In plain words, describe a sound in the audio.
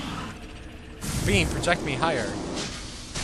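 A game's teleport beam whooshes with rising, warbling tones.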